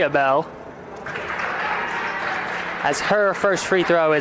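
A crowd in an echoing gym cheers and claps.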